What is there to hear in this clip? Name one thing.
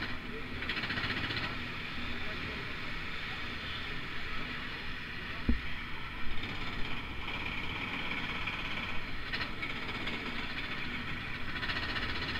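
A small kart engine drones steadily close by.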